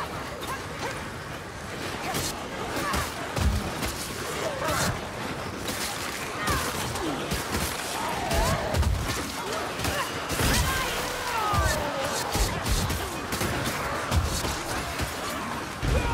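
Swords slash and strike into enemies with wet thuds.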